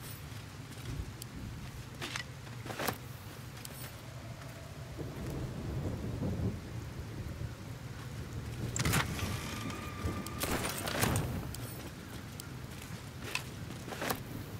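Short sharp clicks and chimes sound as game menus are opened and items picked up.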